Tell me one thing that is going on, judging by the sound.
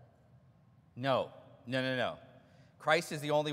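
A man sings out loud chanted phrases in a large room.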